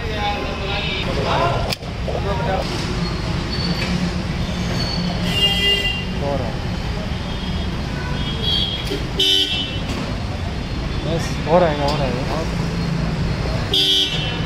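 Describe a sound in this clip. A fuel pump hums steadily as fuel flows through a nozzle into a car's tank.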